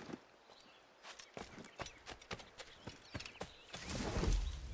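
Quick footsteps patter across stone.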